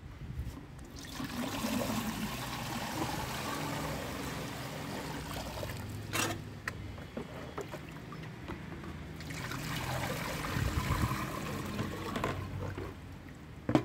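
Water pours and splashes into a metal pot.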